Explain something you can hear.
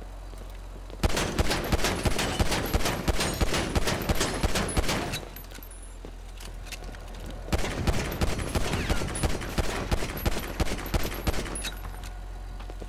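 A pistol fires in rapid bursts of shots.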